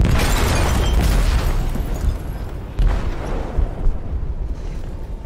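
A loud explosion booms and rumbles, then fades.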